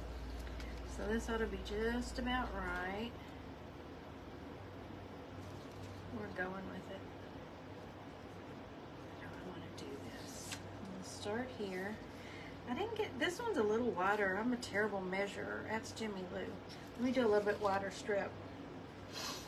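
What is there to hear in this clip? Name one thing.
A woman talks calmly and closely into a microphone.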